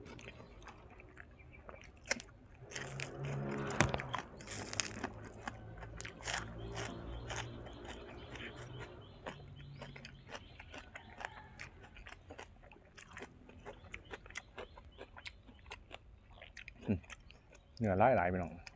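A young man chews food noisily close by.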